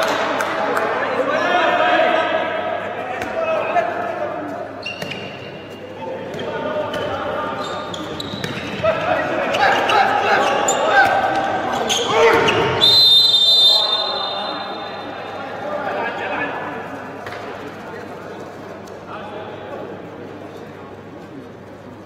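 A handball bounces on a hard floor.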